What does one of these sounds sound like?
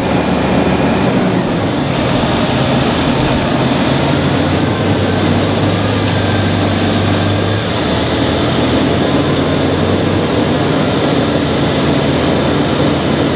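A large diesel farm tractor idles.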